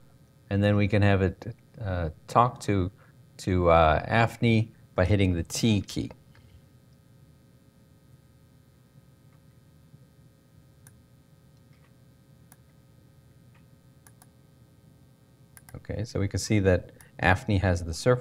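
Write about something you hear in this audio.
A man lectures calmly through a microphone.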